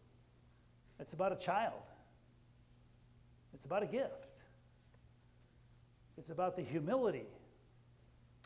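A middle-aged man speaks in short phrases through a microphone, with pauses between them.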